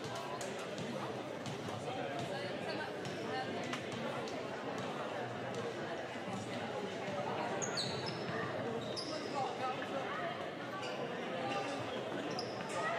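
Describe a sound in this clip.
Men talk casually at a distance in a large echoing hall.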